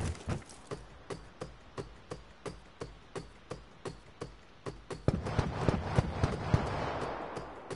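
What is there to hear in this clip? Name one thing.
Hands and feet clank on metal ladder rungs in a steady rhythm.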